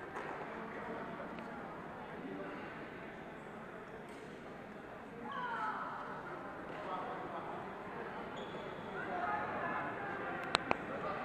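A crowd of people chatters throughout, echoing in a large hall.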